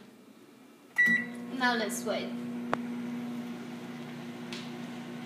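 A microwave hums steadily.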